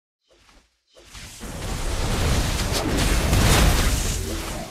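Video game combat effects clash and whoosh loudly.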